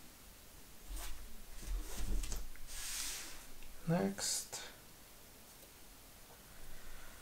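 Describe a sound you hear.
Playing cards slide and rustle against one another.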